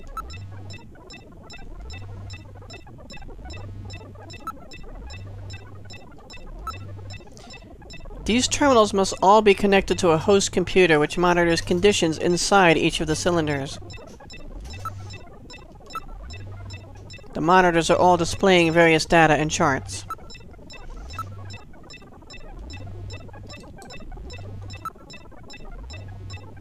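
Simple electronic game music plays a slow, repeating beat.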